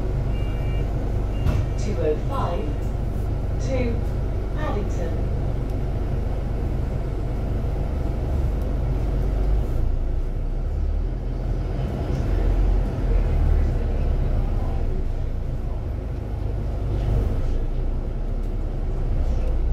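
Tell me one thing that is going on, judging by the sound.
Traffic passes by on the road nearby.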